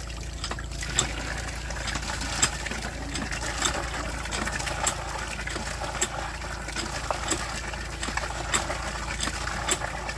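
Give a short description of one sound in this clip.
Water splashes steadily from a hand pump into a basin.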